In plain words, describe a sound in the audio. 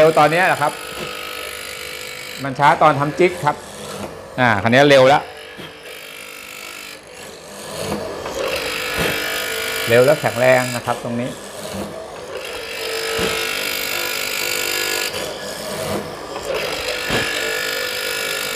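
A machine motor whirs as its chisel bores into wood.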